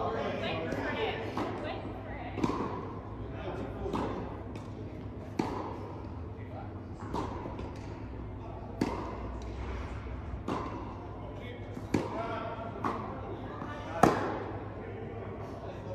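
Tennis balls bounce on the court.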